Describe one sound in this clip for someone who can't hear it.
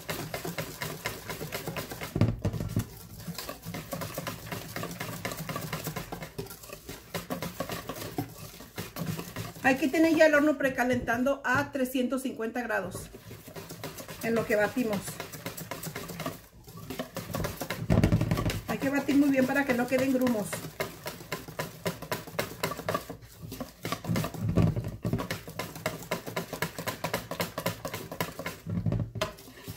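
A whisk beats batter in a metal bowl with rapid clinking and sloshing.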